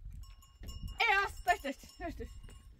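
A woman calls out loudly.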